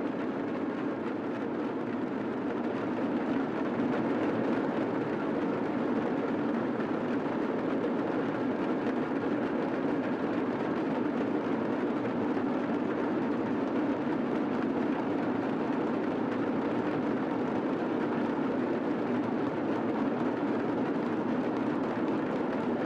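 Drums beat along with the cymbals.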